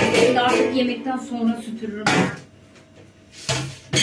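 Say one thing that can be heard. A metal tray clatters.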